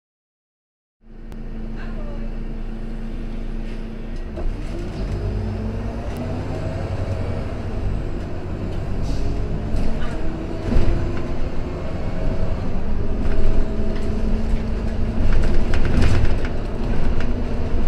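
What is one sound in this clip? A bus engine rumbles steadily from inside as the bus drives along, growing louder.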